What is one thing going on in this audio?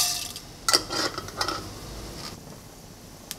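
Oil sizzles softly in a hot pan.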